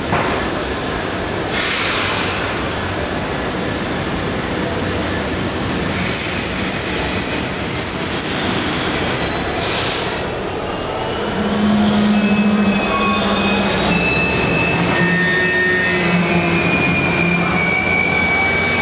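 A diesel engine rumbles steadily close by.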